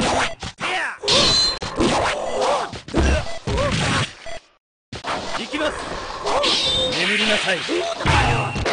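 Loud electronic game sounds play, with a short silence in the middle.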